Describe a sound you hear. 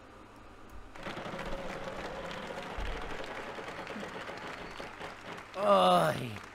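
A prize wheel spins with rapid clicking.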